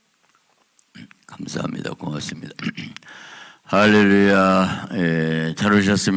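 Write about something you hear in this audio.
A middle-aged man speaks with feeling into a microphone in a large echoing hall.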